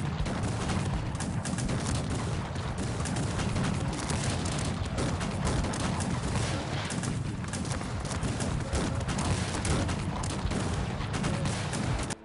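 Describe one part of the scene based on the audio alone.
Muskets fire in a rapid, crackling battle.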